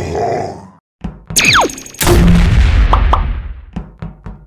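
A laser gun fires with a buzzing blast.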